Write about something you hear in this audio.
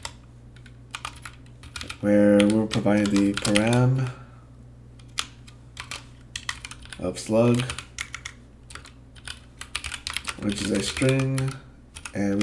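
Keys clatter rapidly on a keyboard.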